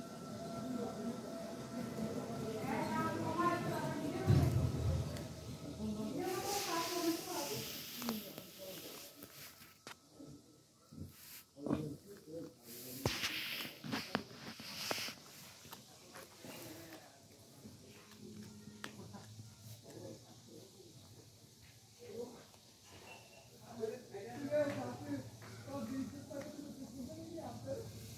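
A kitten gnaws and chews on a stick close by.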